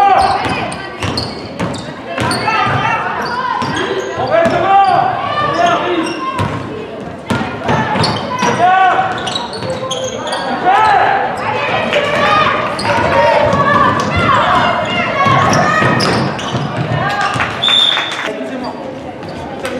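A basketball bounces on the court with hard thuds.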